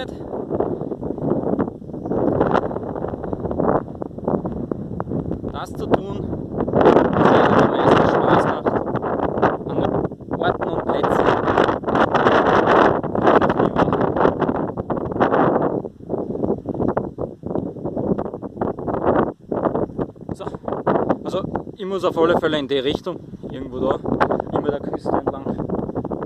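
Wind gusts and buffets against the microphone outdoors.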